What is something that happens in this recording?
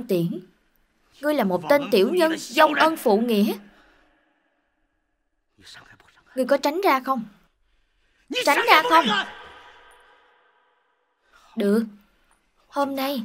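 A man speaks forcefully and menacingly, close by.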